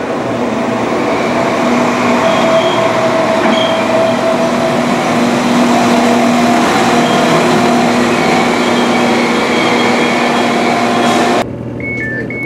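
A train pulls away from a platform with a loud, steady electric whine.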